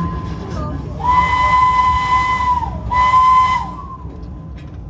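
A steam whistle blows loudly in two long blasts.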